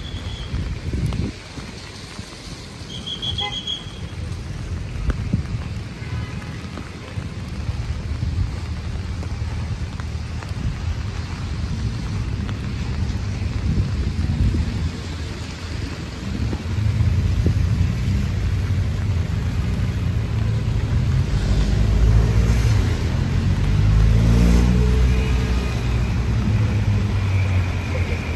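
Footsteps splash on a wet pavement outdoors.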